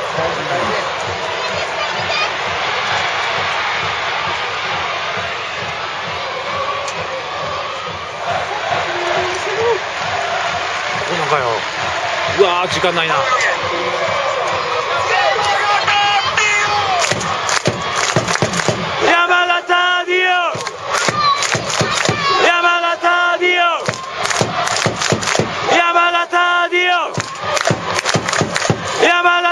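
A large stadium crowd cheers and roars in an open, echoing space.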